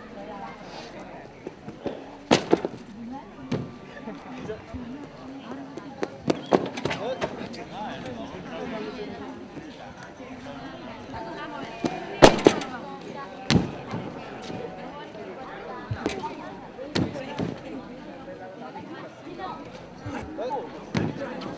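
A crowd of young people murmurs in the background outdoors.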